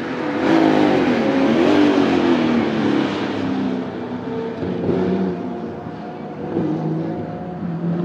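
A race car exhaust pops and crackles.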